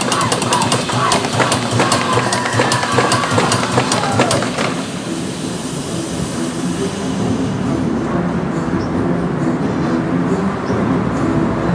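A fog machine hisses as smoke billows out.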